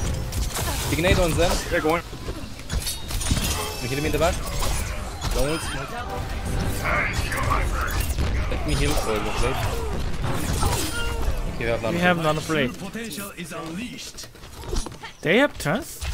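Video game combat effects clash and whoosh in quick bursts.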